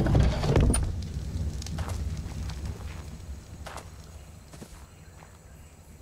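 Footsteps crunch through leafy undergrowth.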